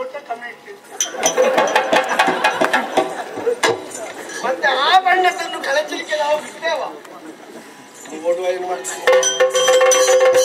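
A drum is beaten in a quick rhythm.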